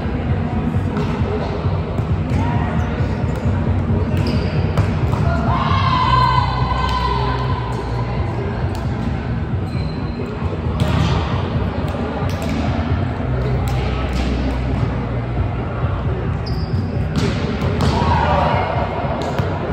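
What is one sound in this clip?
A volleyball thuds off players' arms and hands.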